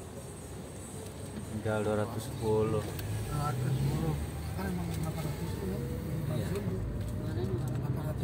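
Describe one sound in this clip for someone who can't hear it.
A car speeds up on the road.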